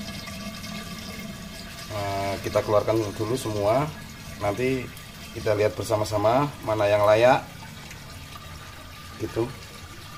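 Water trickles into a tank from a pipe.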